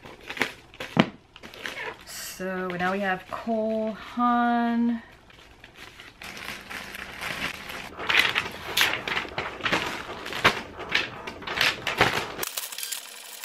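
A plastic mailer bag crinkles and rustles.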